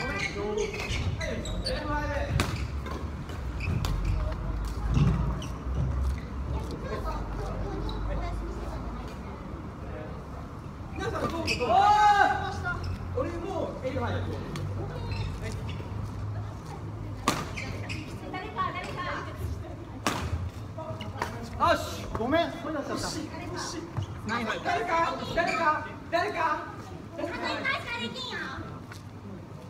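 Badminton rackets strike a shuttlecock in an echoing hall.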